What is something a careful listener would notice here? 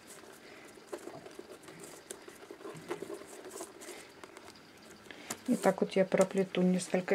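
Paper tubes rustle and tap softly as hands bend them.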